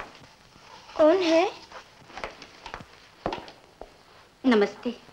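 A woman speaks with emotion.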